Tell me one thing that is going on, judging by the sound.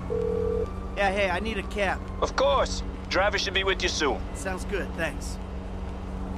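A man speaks calmly on a phone.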